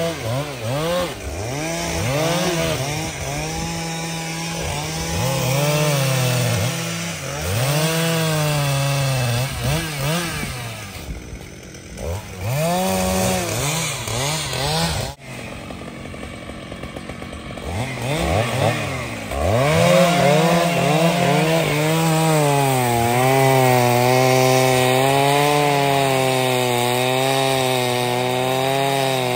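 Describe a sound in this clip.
A chainsaw engine revs up and down close by.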